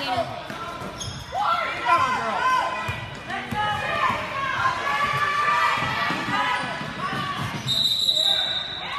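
A crowd of spectators shouts and cheers in a large echoing hall.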